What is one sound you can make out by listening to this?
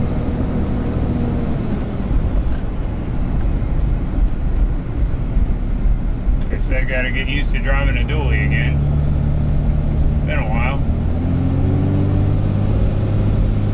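A truck engine rumbles steadily while driving, then rises in pitch as it speeds up.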